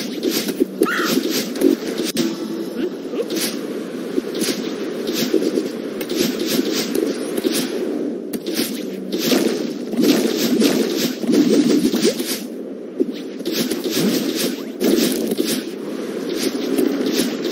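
Short bright game sound effects chirp as a little figure jumps and dashes.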